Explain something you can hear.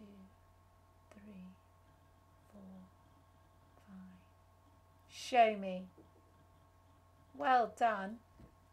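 A woman speaks calmly and clearly into a nearby microphone, with short pauses.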